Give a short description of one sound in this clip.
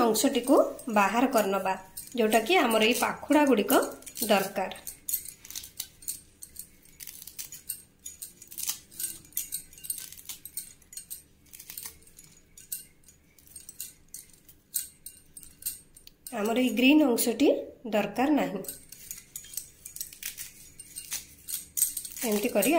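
Flower petals rustle softly as fingers pluck them apart.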